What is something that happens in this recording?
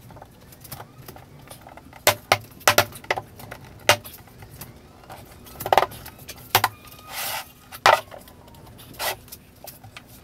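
Wooden panels knock and clatter against each other on a workbench.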